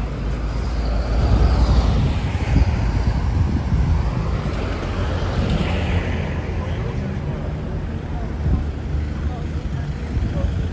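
Voices of people chatting murmur in the distance.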